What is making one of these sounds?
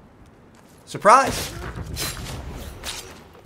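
A blade stabs into a body with a wet thud.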